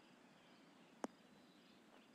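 A golf ball thuds onto the grass.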